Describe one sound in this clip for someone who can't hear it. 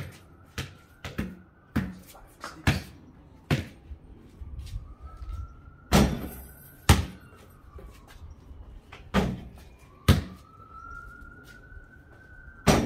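A basketball bounces on concrete outdoors.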